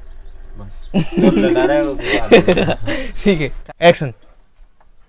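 Several people laugh together.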